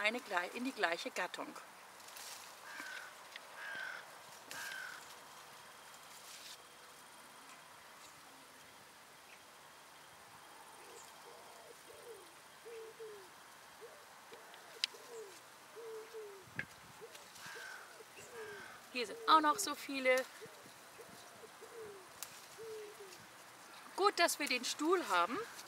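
Leaves rustle as berries are picked from a bush.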